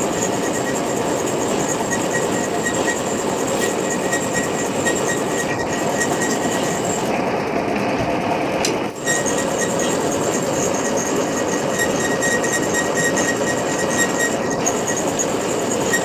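A lathe whirs and rumbles steadily.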